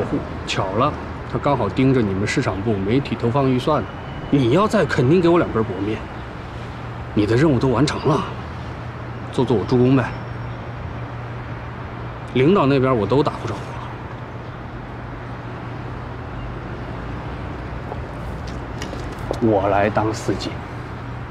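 A young man speaks calmly and close by.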